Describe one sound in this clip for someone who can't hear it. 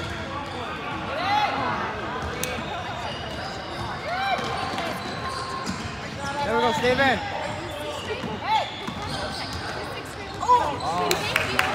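Basketball shoes squeak sharply on a gym floor, echoing in a large hall.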